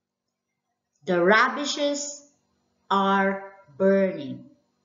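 A woman speaks slowly and clearly into a headset microphone, as if teaching.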